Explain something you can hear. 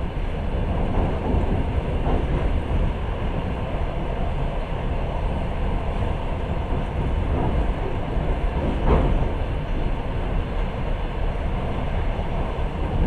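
A train rumbles along steadily on its tracks.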